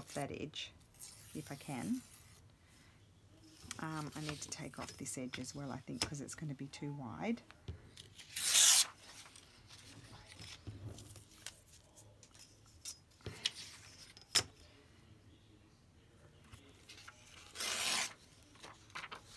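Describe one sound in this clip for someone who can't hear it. Paper tears along a metal ruler.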